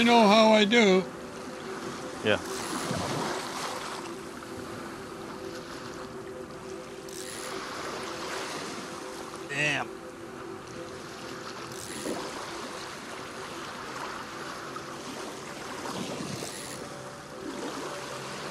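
Ocean waves wash steadily below.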